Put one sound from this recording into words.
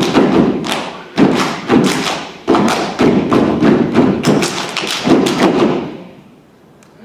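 A group of dancers stomp and clap in a loud rhythm on a wooden stage, echoing in a large hall.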